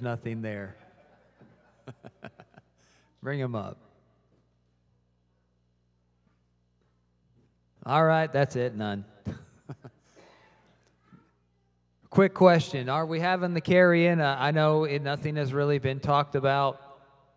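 A man sings with feeling through a microphone and loudspeakers in a large hall.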